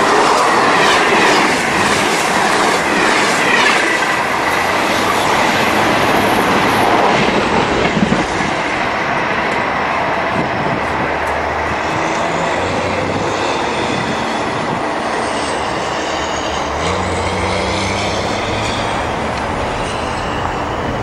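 A passenger train rushes past close by and rumbles away into the distance.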